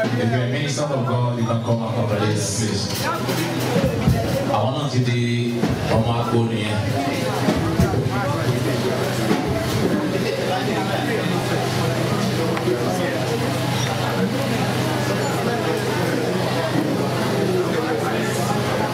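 A crowd of people chatters and cheers in a large room.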